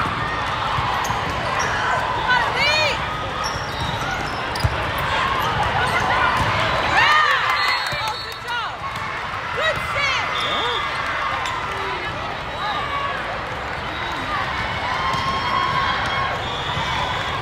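A loud crowd chatters throughout in a large echoing hall.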